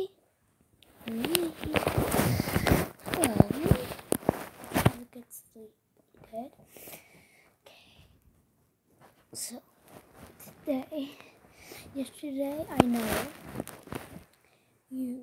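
Fabric rustles and rubs against a phone's microphone.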